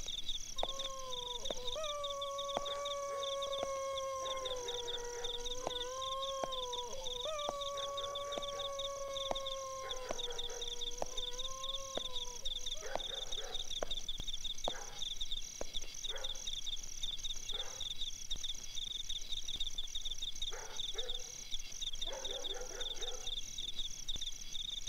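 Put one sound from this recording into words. Crickets chirp steadily outdoors at night.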